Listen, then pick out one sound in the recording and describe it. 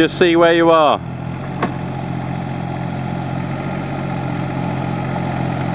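A small diesel engine idles with a steady low rumble.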